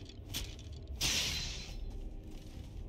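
Fire bursts with a loud whooshing hiss.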